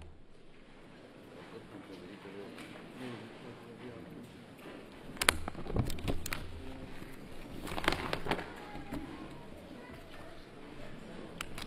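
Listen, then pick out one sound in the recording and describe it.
A large crowd of men murmurs and chats in an echoing hall.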